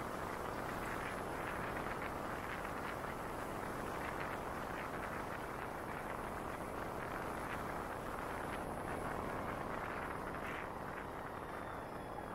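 Wind rushes loudly past a moving motorcycle.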